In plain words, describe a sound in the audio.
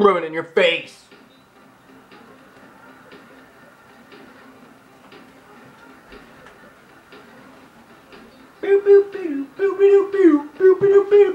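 Music with a steady beat plays through a small loudspeaker.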